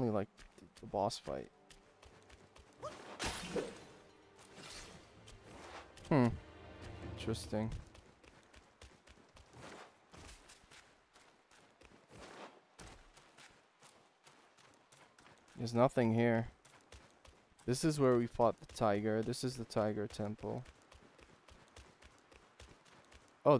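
Footsteps patter quickly on stone and dry ground.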